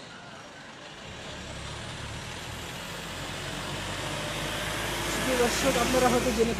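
A truck engine rumbles as it drives closer and passes by.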